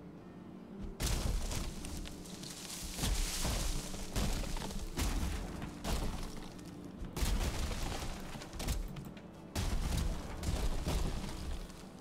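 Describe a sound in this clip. A tree creaks, falls and crashes to the ground.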